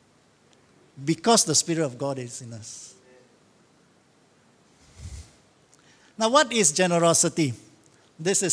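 A man speaks calmly into a microphone, lecturing.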